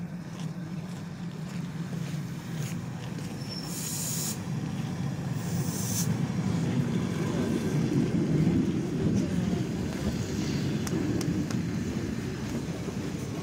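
An electric train rumbles in along the tracks and slows down.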